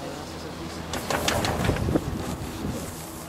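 A chairlift clatters as it rolls over a pylon.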